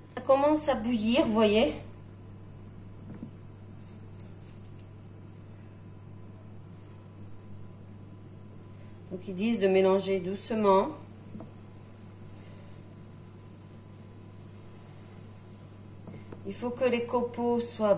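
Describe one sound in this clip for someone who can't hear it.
A wooden spoon stirs liquid in a pan.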